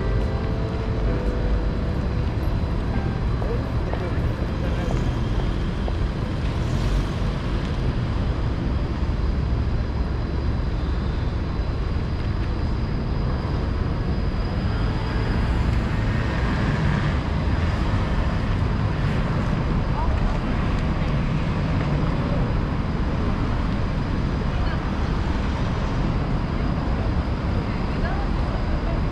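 Traffic hums steadily along a city street.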